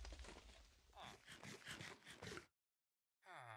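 Quick crunchy chewing sounds repeat as an apple is eaten.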